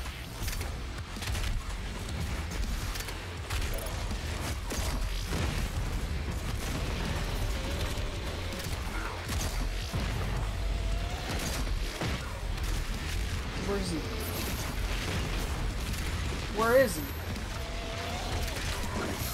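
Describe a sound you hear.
A shotgun fires again and again.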